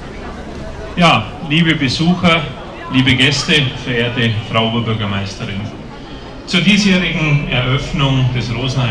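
A man speaks through a microphone and loudspeaker.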